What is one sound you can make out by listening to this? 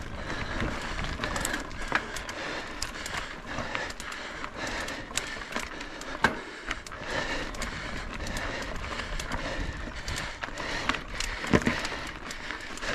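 Tyres roll and crunch over a rough dirt trail with loose stones.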